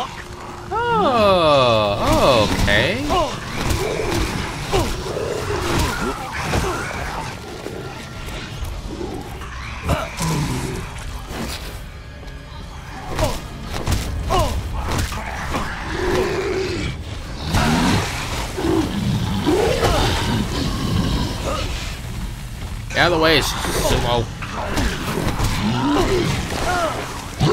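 A creature snarls and shrieks close by.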